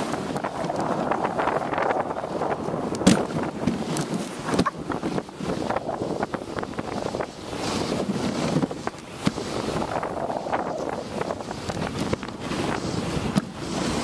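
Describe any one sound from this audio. A sled's runners hiss and scrape over snow.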